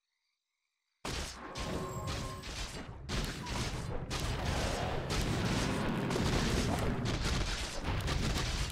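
Battle sound effects crash and whoosh loudly.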